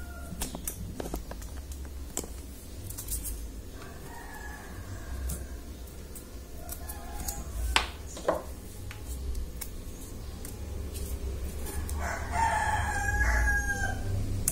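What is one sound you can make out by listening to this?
Hands click and knock against a plastic case.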